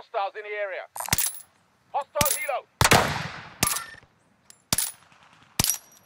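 Rifle shots crack one after another, with a short echo after each.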